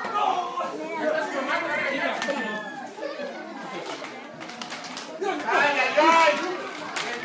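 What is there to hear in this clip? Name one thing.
A crowd shouts and cheers loudly in an echoing hall.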